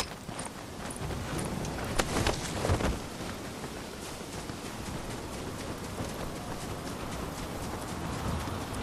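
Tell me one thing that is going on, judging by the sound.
Footsteps crunch on gravel and then swish through grass.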